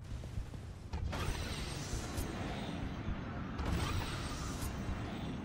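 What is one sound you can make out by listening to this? A magical blast whooshes and crackles loudly.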